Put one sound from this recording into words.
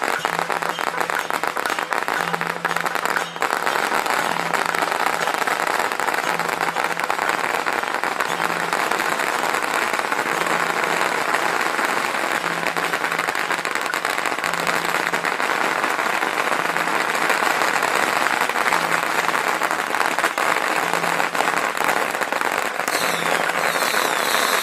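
Firecrackers crackle and pop rapidly and without pause, loud and close, outdoors.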